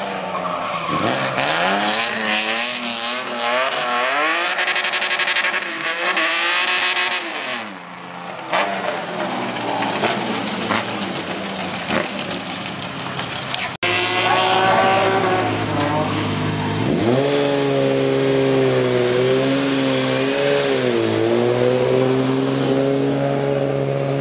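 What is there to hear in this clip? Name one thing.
A car engine revs hard and rises and falls in pitch as the car races around a track.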